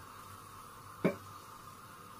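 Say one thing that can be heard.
A metal spoon clinks once against a cooking pan.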